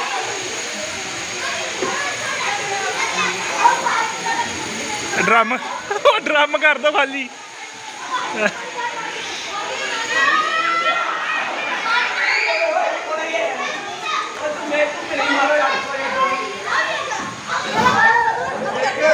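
Children shout and laugh excitedly nearby outdoors.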